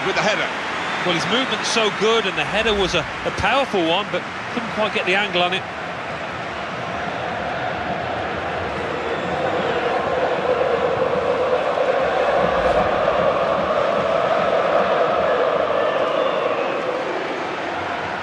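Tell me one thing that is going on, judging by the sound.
A large stadium crowd roars and cheers steadily, swelling louder.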